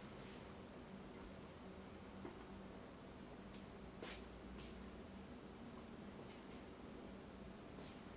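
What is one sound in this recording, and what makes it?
A man's footsteps shuffle softly across a floor.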